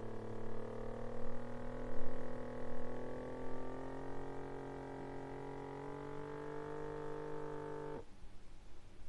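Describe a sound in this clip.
A small electric pump hums steadily as it inflates a cuff, its pitch slowly rising, then stops.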